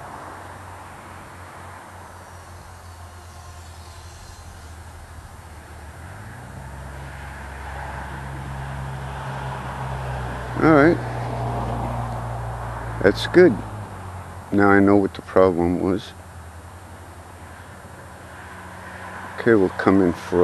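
A small model plane's motor drones steadily, growing louder for a while before easing off.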